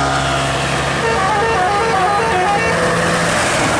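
A bus horn plays a quick, tuneful melody.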